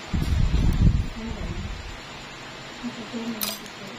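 Nail clippers snip through a toenail.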